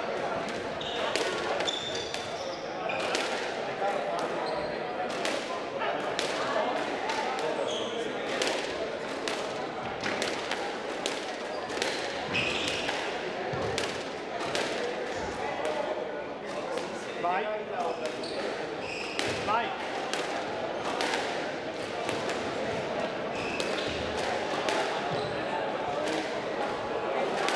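A squash ball smacks against the walls again and again, echoing in a hard-walled hall.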